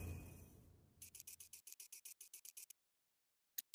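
Quick soft clicks tick rapidly as a menu map zooms out.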